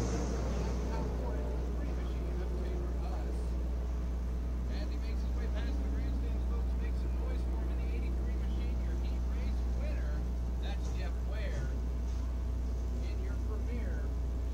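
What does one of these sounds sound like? Car engines idle with a steady low rumble outdoors.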